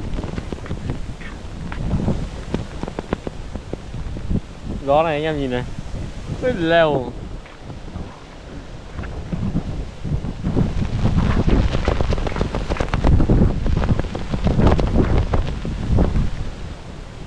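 Strong wind gusts and buffets loudly outdoors.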